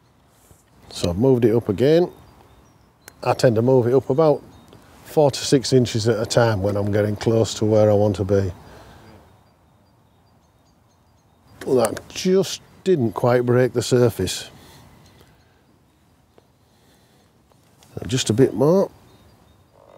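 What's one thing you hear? An elderly man talks calmly into a clip-on microphone, close by.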